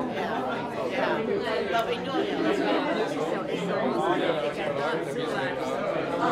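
Women greet each other close by, talking with animation.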